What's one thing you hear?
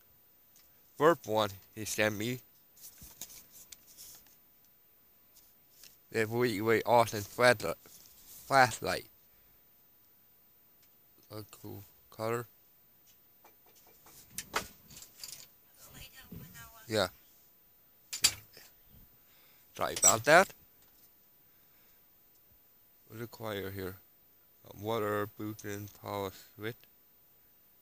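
A young man talks casually into a headset microphone, in bursts with pauses.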